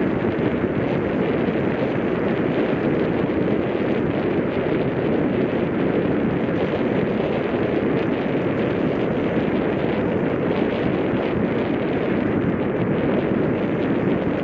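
Tyres roll steadily over a packed dirt path.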